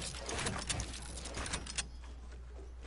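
Building pieces clatter and thud in quick bursts in a video game.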